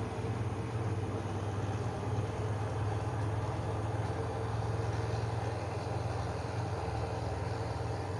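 A diesel train rumbles as it pulls away.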